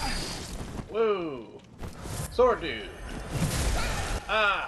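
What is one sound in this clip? Creatures cry out in pain.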